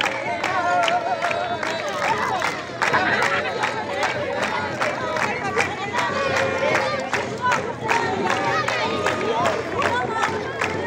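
People clap their hands in a steady rhythm.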